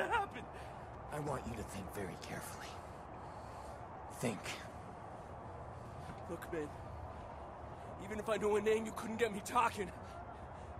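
A man speaks in a low, calm, stern voice, close by.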